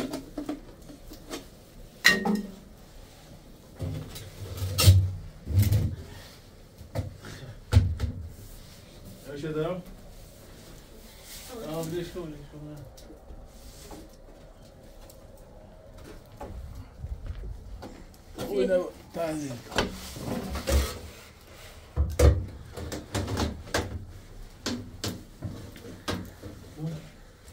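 Metal stovepipes clank and scrape as they are fitted together.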